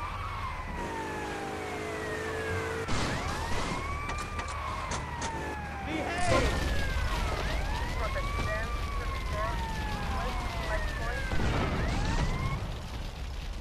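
A police siren wails, rising and falling in pitch.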